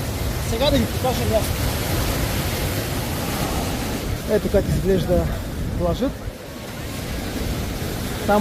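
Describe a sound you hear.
Wind buffets against the microphone outdoors.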